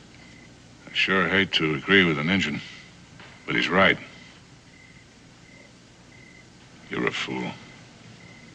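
A middle-aged man speaks in short, tense phrases, close by.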